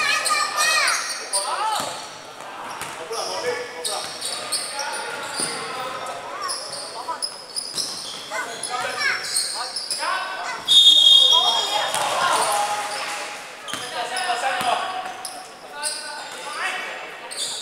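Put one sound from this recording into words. Young men shout and call out across an echoing hall.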